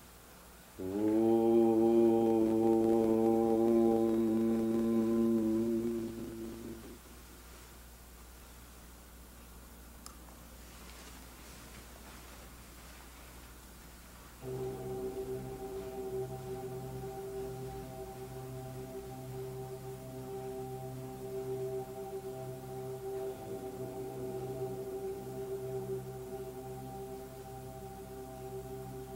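An elderly man chants in long, steady held tones into a microphone.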